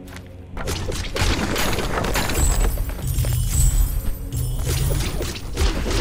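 Magic blasts burst with loud impacts.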